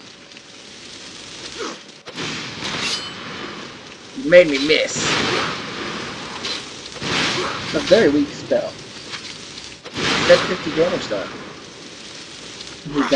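Fire spells whoosh and roar in bursts.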